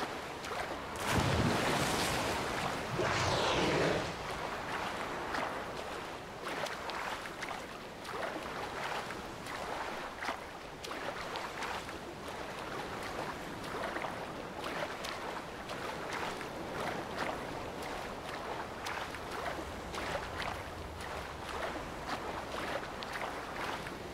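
Waves lap and slosh all around.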